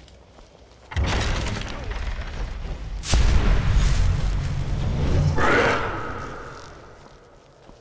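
A magic spell roars and crackles.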